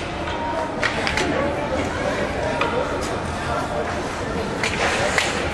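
Young players shout to each other across an echoing ice rink.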